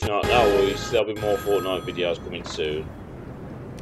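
A short bright musical jingle plays.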